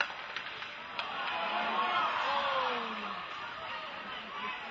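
Spectators cheer and shout in an echoing rink.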